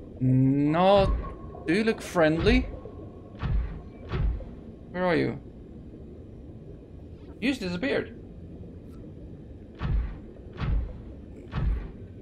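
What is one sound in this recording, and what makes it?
Heavy metal footsteps thud dully underwater.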